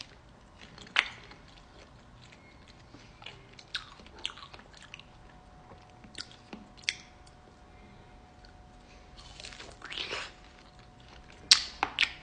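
A woman crunches and bites into icy fruit close up.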